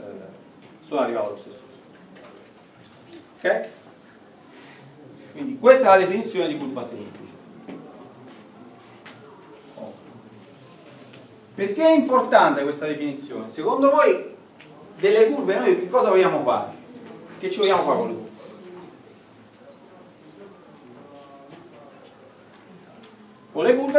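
A man lectures calmly, speaking in bursts with pauses.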